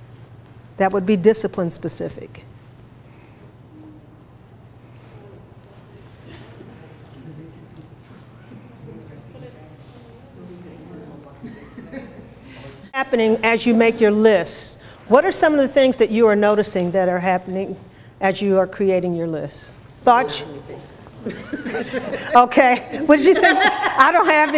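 A woman speaks clearly to a group.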